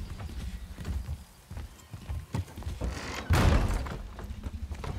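A wooden door creaks and bangs open.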